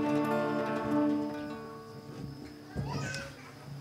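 Musicians play a slow tune on instruments.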